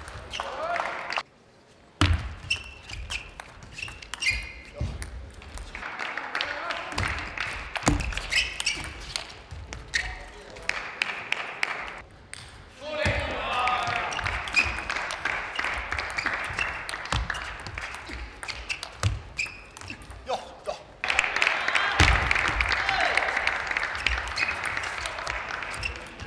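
A ping-pong ball clicks sharply back and forth off paddles and a table.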